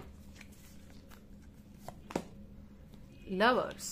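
A card is laid down on a table with a light tap.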